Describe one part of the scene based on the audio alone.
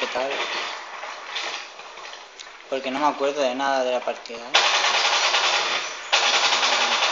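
A toy gun fires with short sharp pops.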